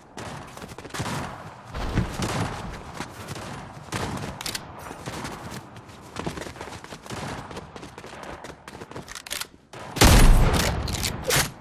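Quick footsteps run across a hard floor in a video game.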